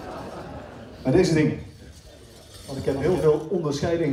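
A man speaks loudly through a microphone in a hall.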